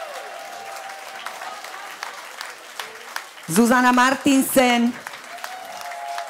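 An audience claps along.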